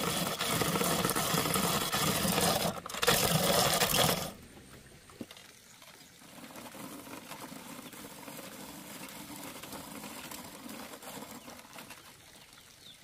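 Wood rasps quickly against a metal grater, close by.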